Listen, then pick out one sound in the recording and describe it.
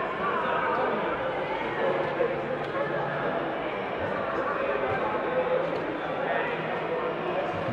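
Darts thud into an electronic dartboard.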